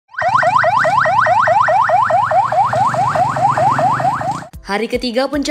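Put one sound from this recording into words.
An ambulance siren wails rapidly, rising over and over.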